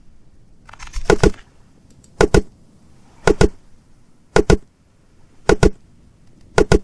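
Blows thud repeatedly against a palm tree trunk.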